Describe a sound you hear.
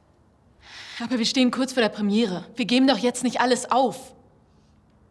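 A woman speaks firmly and close by.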